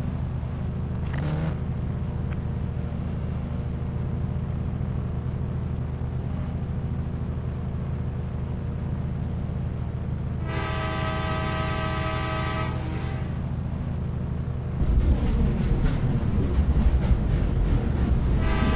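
A train engine rumbles steadily.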